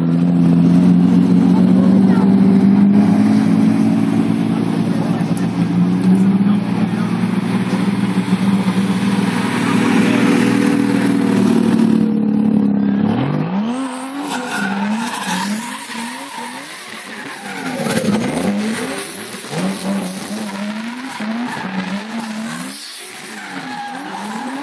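Tyres squeal and screech on the tarmac.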